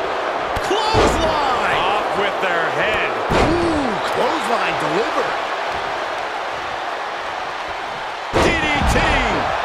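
Heavy bodies slam hard onto a wrestling ring mat.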